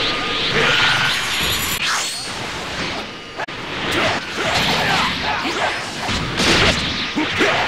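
Energy blasts whoosh and crackle in quick bursts.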